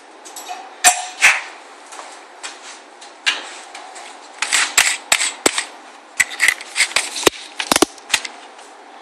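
Tools knock and clatter on a hard table.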